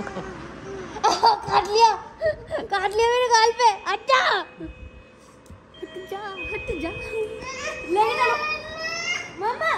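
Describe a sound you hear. A small child squeals and babbles excitedly close by.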